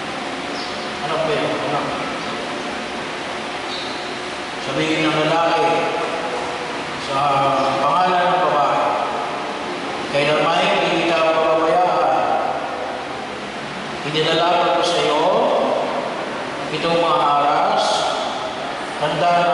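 An older man speaks slowly and calmly nearby.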